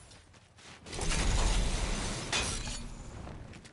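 A pickaxe strikes and smashes wood in quick blows.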